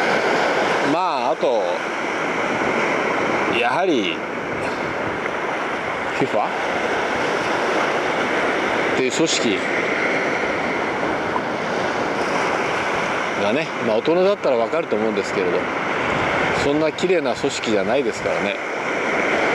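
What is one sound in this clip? A middle-aged man speaks calmly and briefly, close by.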